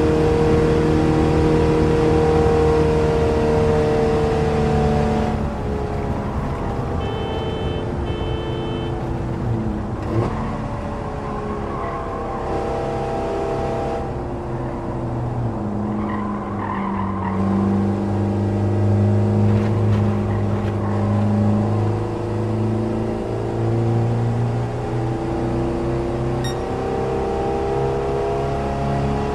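A small car engine drones and revs up and down as gears change.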